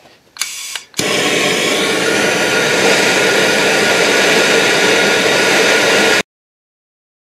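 Compressed air hisses loudly and steadily from an air nozzle.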